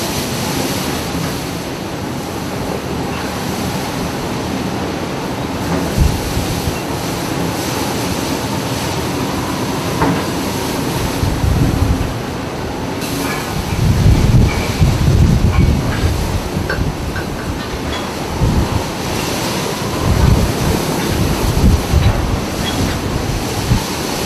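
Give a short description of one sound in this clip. A strong wind roars steadily outdoors.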